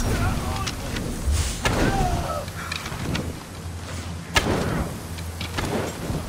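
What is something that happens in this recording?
Fiery arrows burst with crackling blasts.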